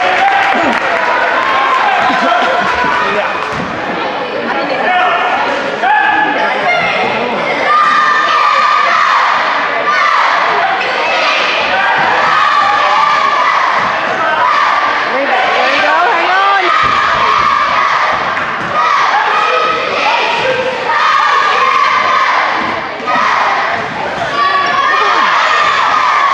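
A crowd of spectators talks and shouts in a large echoing gym.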